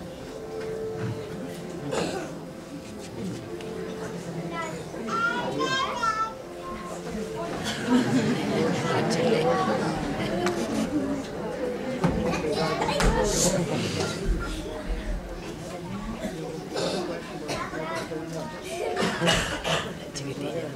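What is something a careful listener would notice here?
Young children sing together in an echoing hall.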